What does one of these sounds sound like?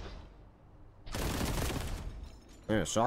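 An explosion booms in a game.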